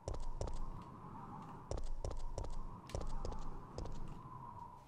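Footsteps thud on wooden boards at a walking pace.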